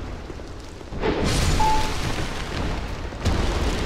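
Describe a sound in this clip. A sword swings and strikes with a loud crash.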